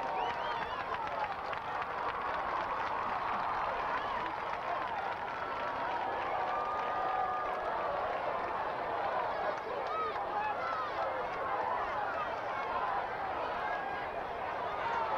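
A large crowd cheers and shouts in the distance outdoors.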